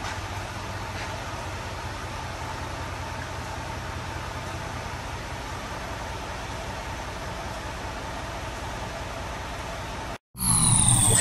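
A truck engine idles steadily in a large echoing hall.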